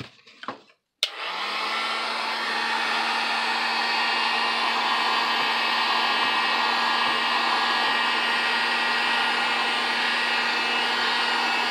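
A heat gun blows with a steady whirring roar.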